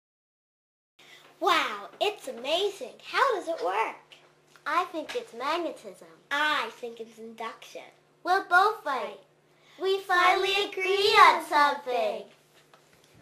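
Another young girl answers, chatting close by.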